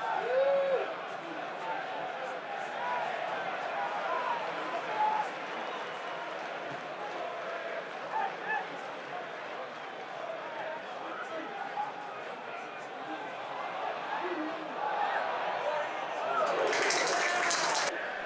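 A large stadium crowd murmurs, shouts and chants throughout.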